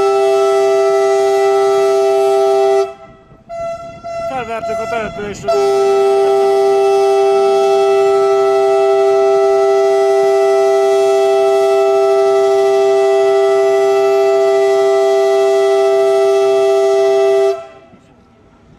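A train rolls along the tracks.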